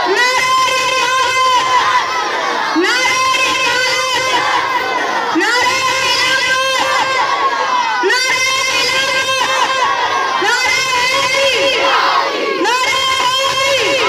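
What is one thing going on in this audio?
A young boy recites loudly and with feeling through a microphone and loudspeaker.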